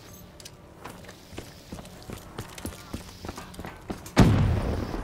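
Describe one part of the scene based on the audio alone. Footsteps clang quickly on metal stairs.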